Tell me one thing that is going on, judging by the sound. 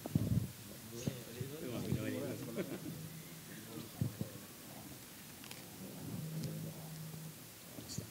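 A man speaks calmly over a loudspeaker.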